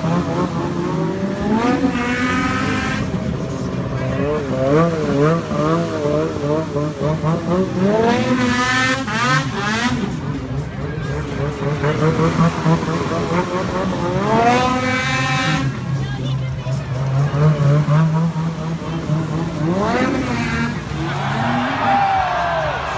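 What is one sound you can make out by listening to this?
Snowmobile engines roar and rev up, rising in pitch.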